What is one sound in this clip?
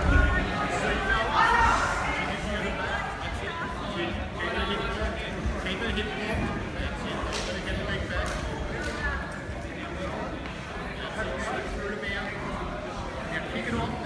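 A crowd of men and women chatters and calls out in a large echoing hall.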